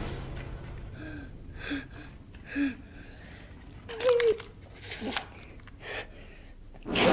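A young boy whimpers and sobs.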